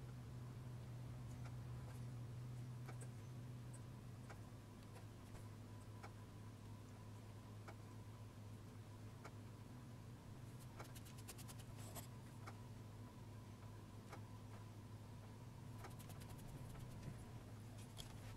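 A pencil point scratches softly across clay.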